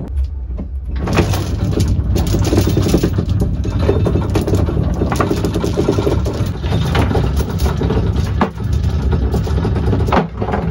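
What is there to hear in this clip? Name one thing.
A heavy chain rattles and clanks as it drops into a pile.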